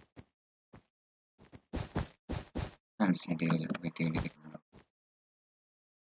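Blocks are placed with quick soft clicks.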